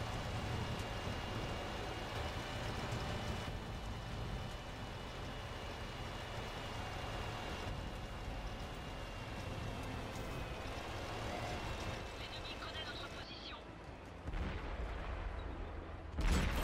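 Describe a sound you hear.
A tank engine rumbles and clanks steadily as the tank drives.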